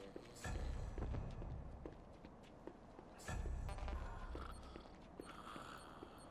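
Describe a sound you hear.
Footsteps thud on a metal floor.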